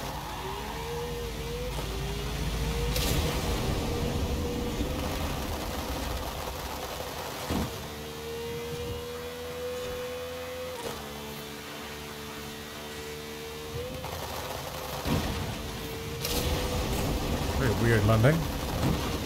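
A sports car engine roars at high speed.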